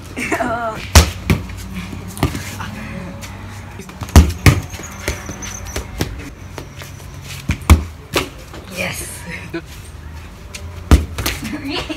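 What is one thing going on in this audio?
A ball thuds as it is kicked and bounces on a hard floor.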